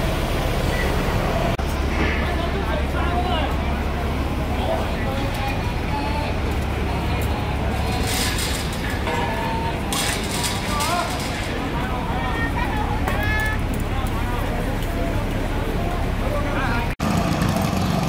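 A crowd shouts and clamours outdoors in the street.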